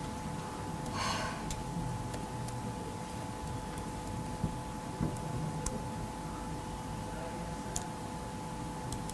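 A young woman speaks softly and haltingly, close to a microphone.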